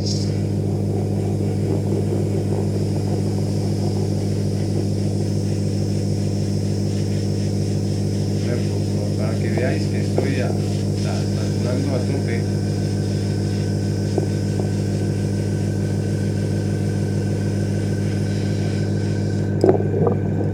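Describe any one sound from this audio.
An airbrush hisses steadily.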